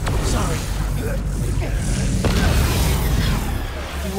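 A metal machine bursts apart with a crash.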